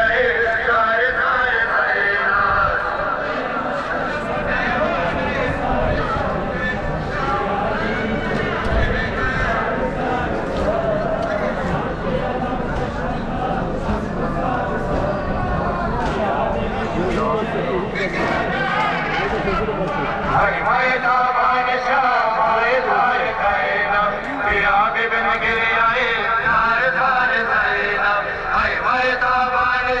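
A man's voice leads the chant through loudspeakers.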